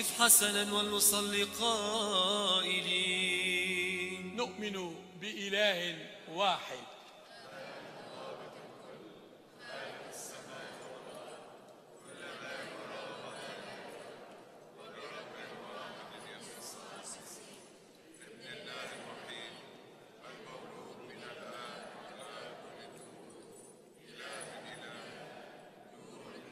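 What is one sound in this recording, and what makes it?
An elderly man chants in a large, echoing hall.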